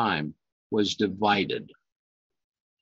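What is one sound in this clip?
An elderly man speaks calmly into a nearby microphone, reading out.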